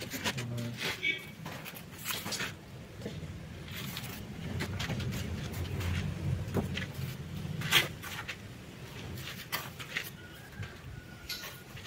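A trowel scrapes and smooths wet mortar.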